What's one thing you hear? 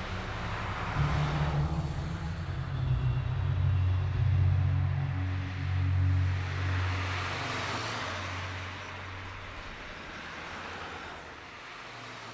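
A car engine rumbles as a car drives past on a road.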